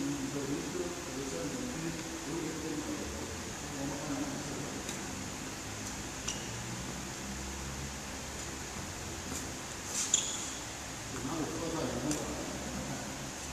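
A man talks casually from across the hall.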